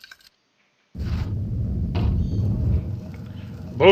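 A heavy stone door grinds open with a deep rumble.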